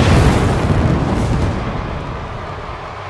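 Pyrotechnic flame jets roar with a deep whoosh.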